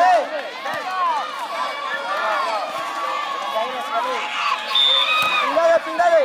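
A volleyball smacks off a player's hand.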